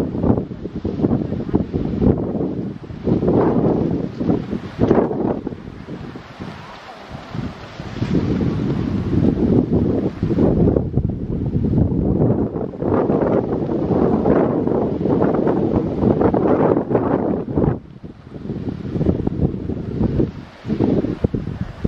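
Wind gusts roar outdoors by the sea.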